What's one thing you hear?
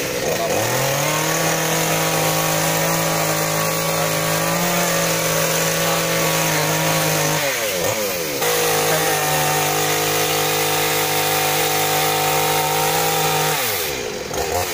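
A chainsaw engine runs steadily.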